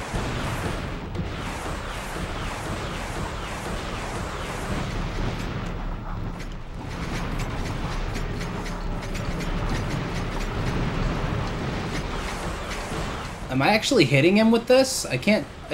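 Explosions boom and crackle again and again.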